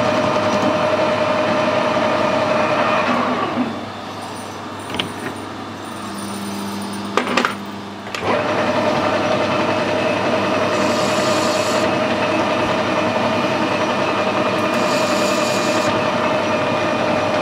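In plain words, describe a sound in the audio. A lathe motor whirs steadily, then winds down and starts up again.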